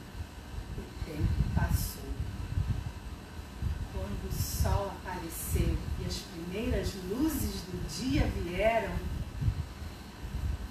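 A woman speaks with animation nearby.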